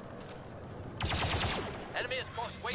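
Rapid gunfire rattles in a burst.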